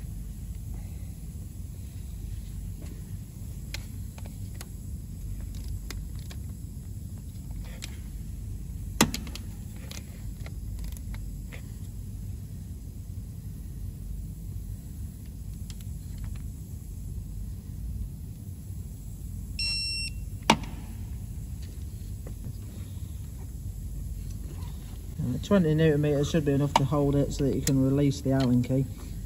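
Metal tools click and knock against engine parts close by.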